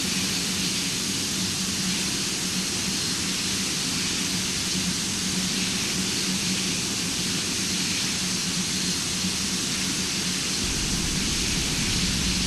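Tyres rumble on a runway.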